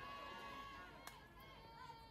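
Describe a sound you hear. A softball smacks into a catcher's glove.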